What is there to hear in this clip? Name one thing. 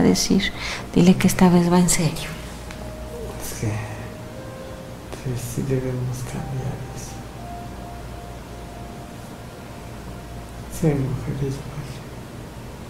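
A man speaks softly and drowsily close by, in short bursts.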